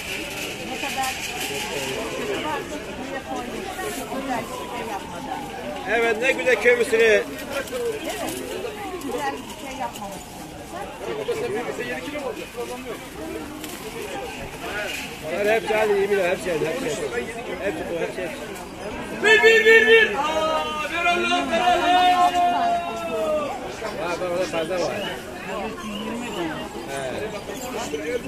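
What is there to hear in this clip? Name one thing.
A crowd murmurs outdoors.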